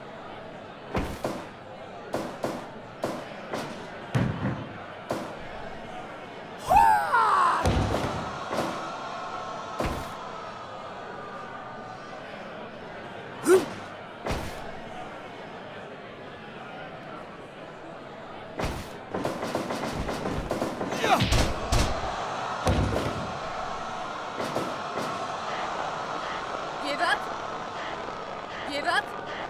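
Heavy thuds and slaps ring out as blows and slams land.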